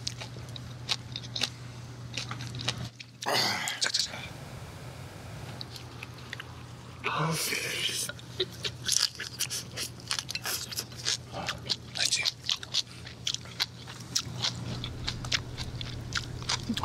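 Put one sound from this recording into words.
A man chews food loudly and wetly close to a microphone.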